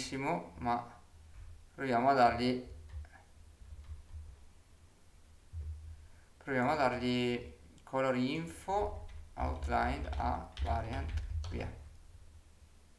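A man talks calmly and close to a microphone, in short bursts.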